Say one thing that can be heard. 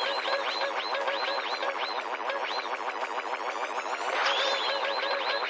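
A game blaster fires rapid, repeated shots.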